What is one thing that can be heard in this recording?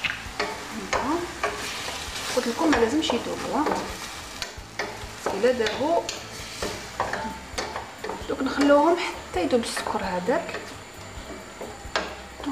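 Potatoes sizzle softly in a pan.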